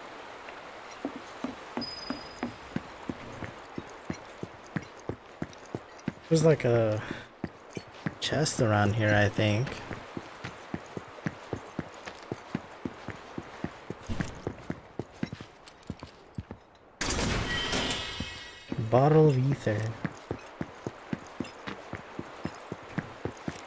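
Footsteps tread steadily across stone.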